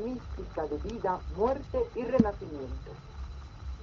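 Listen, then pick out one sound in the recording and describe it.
A woman sings expressively, heard through a television speaker.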